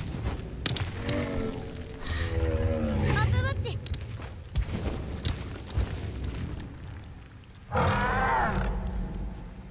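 A large creature lets out warbling, whining cries.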